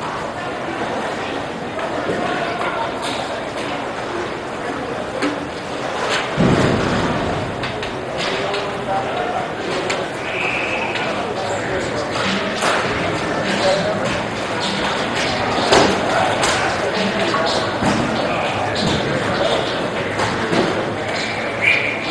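Young men chatter and call out in a large echoing rink.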